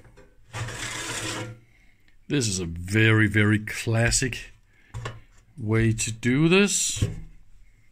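A metal cover clunks as it is lifted off a device.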